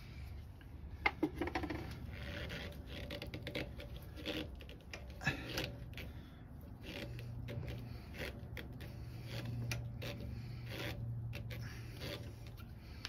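Small wooden and metal parts click and knock as they are handled.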